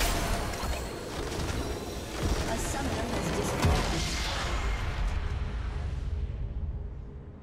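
A large crystal shatters with a loud booming blast.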